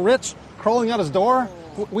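An elderly man talks in a strained voice.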